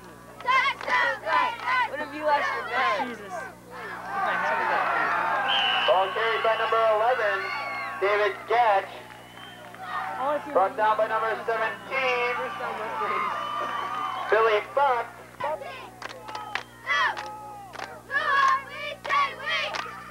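Men shout and cheer close by.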